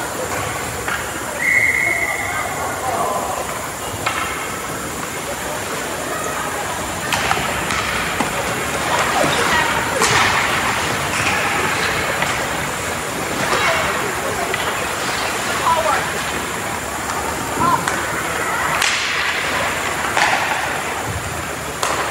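Skates scrape and swish on ice in a large echoing arena.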